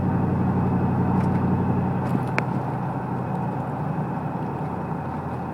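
A car engine runs with a steady low hum, heard from inside the car.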